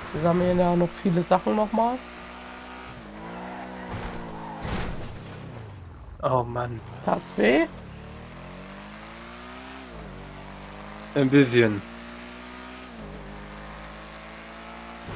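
A car engine hums and drops in pitch as the car slows, then rises again as it speeds up.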